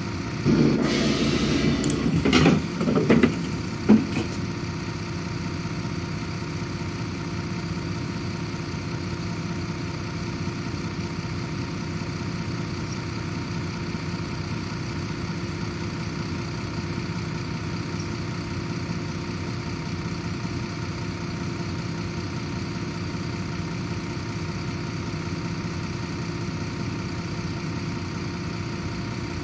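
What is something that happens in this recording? An articulated diesel city bus idles.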